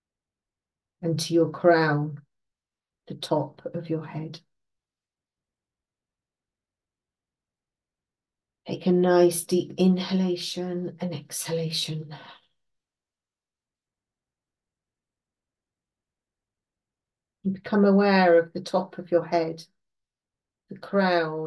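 An elderly woman speaks calmly in short phrases with long pauses, heard close through a microphone.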